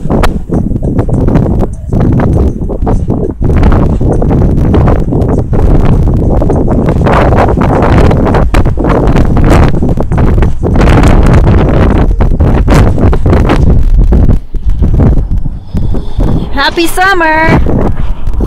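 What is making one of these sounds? Strong wind gusts and buffets the microphone outdoors.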